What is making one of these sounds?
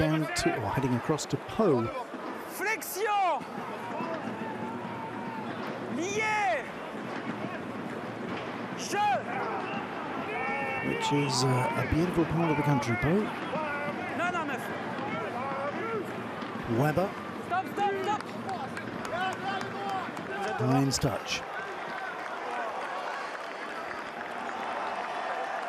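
A large stadium crowd murmurs and cheers steadily in the open air.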